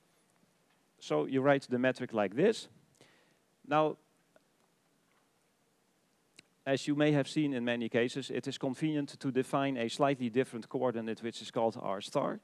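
A man lectures calmly through a headset microphone.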